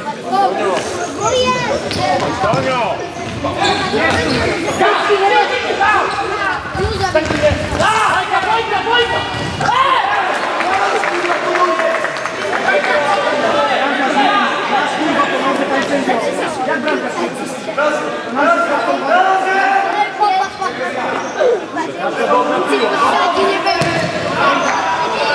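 A crowd of spectators chants and cheers loudly in a large echoing hall.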